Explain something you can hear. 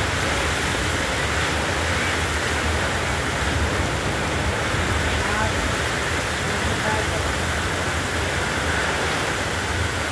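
Heavy rain pours down steadily outdoors in gusting wind.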